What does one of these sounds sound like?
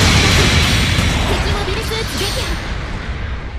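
A loud explosion booms and rumbles, then fades.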